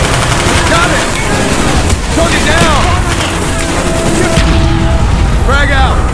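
Rifle shots fire in short bursts.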